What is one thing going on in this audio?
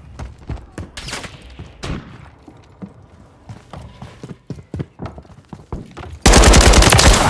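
Footsteps thud on wooden stairs and floors.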